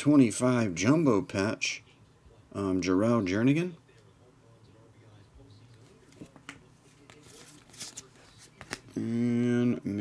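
Trading cards slide and shuffle between fingers.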